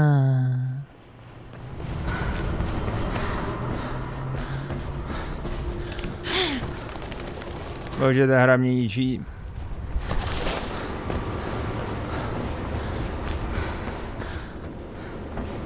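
Footsteps run quickly across a hard surface.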